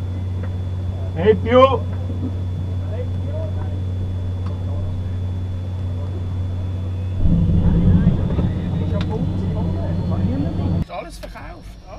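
A steady low electrical hum drones in an aircraft cockpit.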